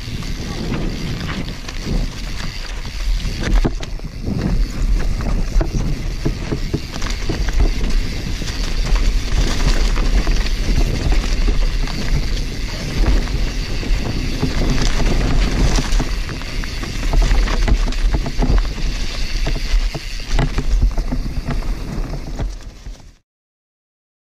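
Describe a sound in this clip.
A bicycle frame rattles and clatters over bumps.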